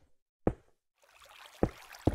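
Water trickles and splashes steadily.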